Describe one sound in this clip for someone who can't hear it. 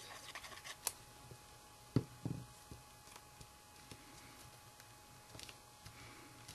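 Paper rustles and crinkles under hands.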